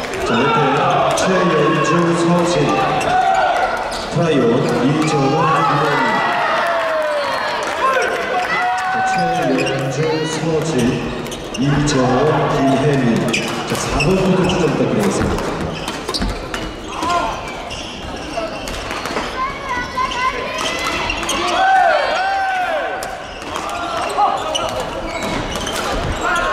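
Sneakers squeak sharply on a wooden court floor.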